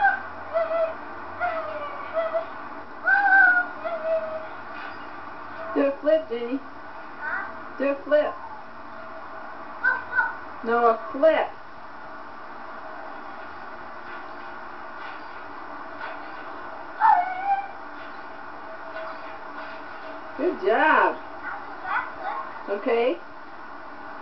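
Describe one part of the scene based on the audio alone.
A young girl squeals and calls out excitedly nearby.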